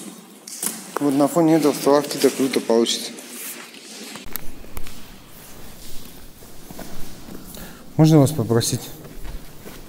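A woman speaks loudly nearby in an echoing space.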